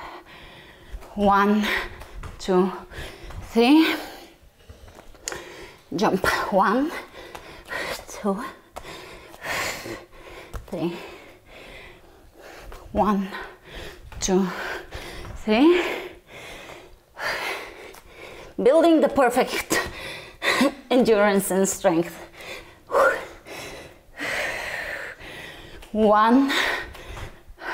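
Bare feet thump softly on a mat.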